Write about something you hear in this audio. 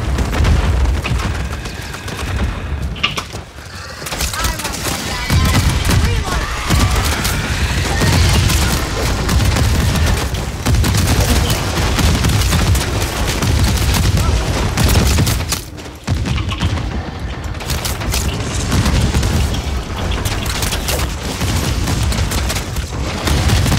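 A young woman talks with animation through a close microphone.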